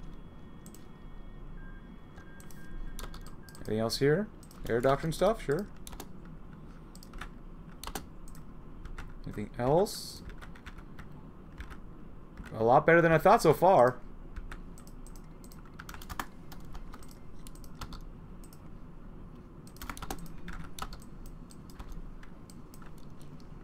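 Soft interface clicks sound now and then.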